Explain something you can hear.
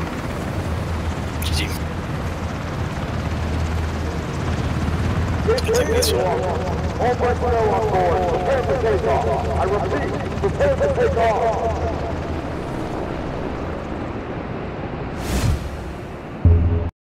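A helicopter's rotor thumps and roars steadily.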